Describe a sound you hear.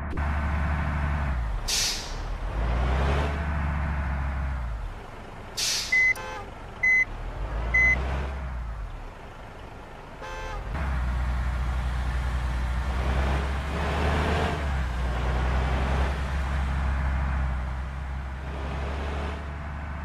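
A bus engine hums and rumbles steadily as the bus drives.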